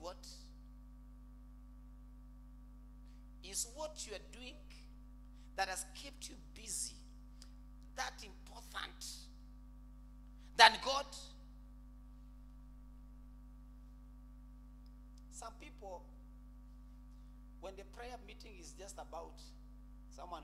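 A man preaches with animation into a microphone, in bursts with pauses.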